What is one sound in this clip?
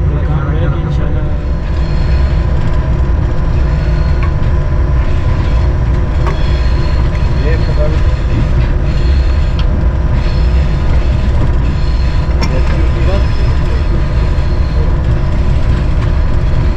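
A diesel locomotive engine rumbles steadily up close.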